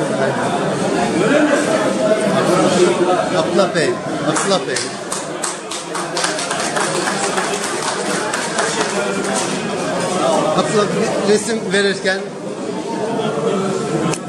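A crowd of men and women chatter in a large echoing hall.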